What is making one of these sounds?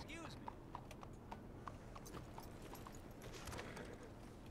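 Horse hooves clop slowly on cobblestones.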